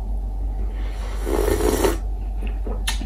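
A man slurps coffee loudly, close by.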